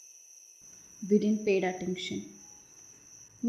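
A young woman speaks softly, close by.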